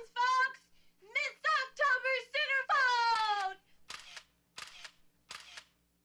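A woman sings in a high voice.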